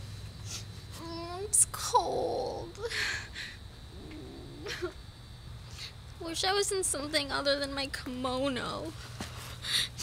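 A young woman sobs and whimpers close by.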